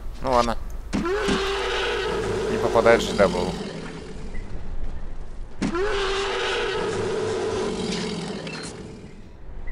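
A creature lets out loud, hissing screeches.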